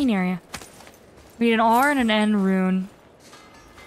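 A young woman speaks into a close microphone.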